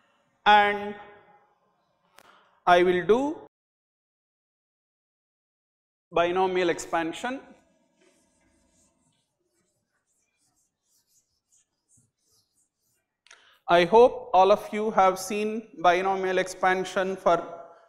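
An elderly man lectures calmly into a clip-on microphone, with pauses.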